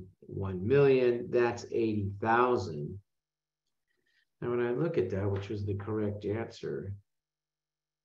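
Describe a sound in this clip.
A man speaks calmly and explains, close to a microphone.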